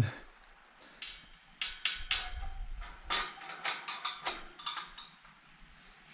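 A metal gate clanks and rattles as it opens and shuts.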